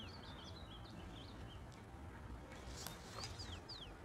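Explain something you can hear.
A card is laid down on a table with a soft tap.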